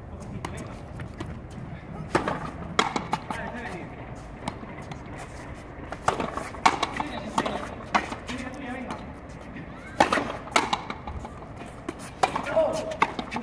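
A ball smacks against a wall and rackets again and again, echoing in a large hall.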